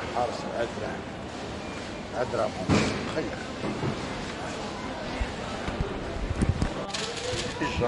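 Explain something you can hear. A shopping trolley rattles as it rolls along a hard floor.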